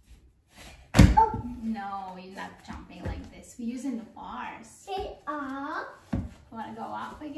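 Small feet thump on a soft mat.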